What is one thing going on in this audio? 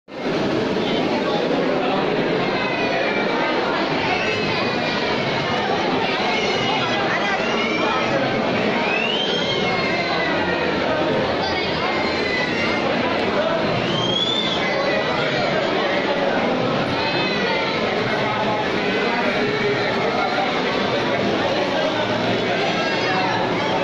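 A crowd of people chatters loudly all around in an echoing hall.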